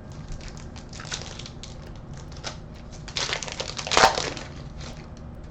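A foil card wrapper crinkles and tears open.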